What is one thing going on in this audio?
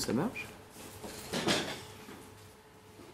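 A man speaks.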